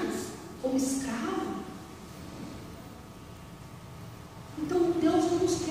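A middle-aged woman speaks calmly through a microphone in a reverberant hall.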